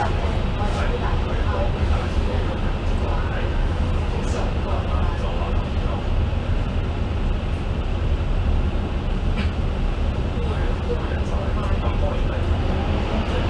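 A diesel double-decker bus drives along in traffic with a low engine drone.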